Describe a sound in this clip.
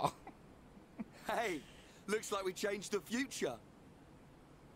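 A young man speaks cheerfully, close by.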